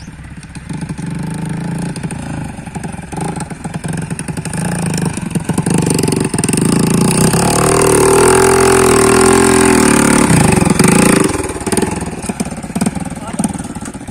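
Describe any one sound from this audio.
A motorcycle engine rumbles loudly and revs up and down.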